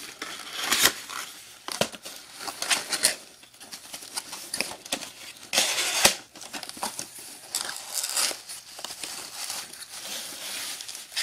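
Cardboard rustles and scrapes as a box is handled and opened.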